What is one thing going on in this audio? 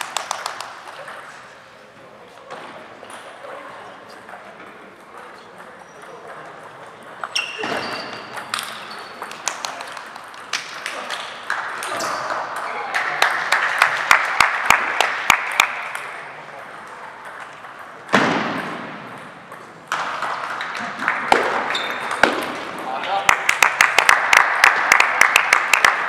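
A ping-pong ball clicks back and forth off paddles and a table in a large echoing hall.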